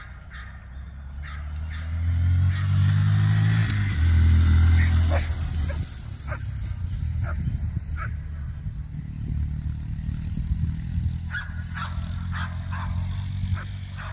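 A motorcycle engine rumbles and revs as the bike rides across open ground.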